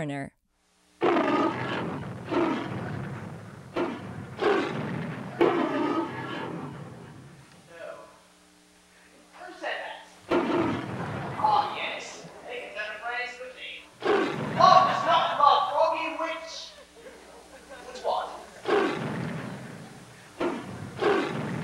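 A young man speaks with animation on a stage, heard from a distance.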